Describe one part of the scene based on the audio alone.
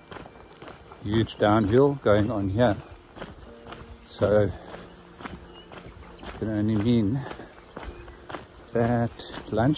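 A middle-aged man talks calmly, close to the microphone.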